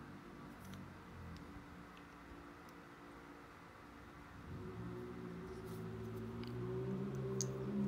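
A tool scrapes lightly along a wrapped handle.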